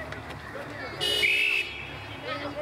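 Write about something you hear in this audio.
A referee's whistle blows one sharp blast.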